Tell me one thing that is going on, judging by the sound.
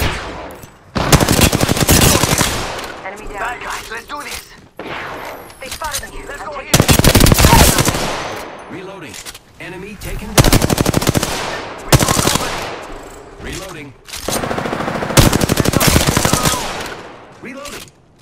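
A rifle fires loud rapid bursts of shots.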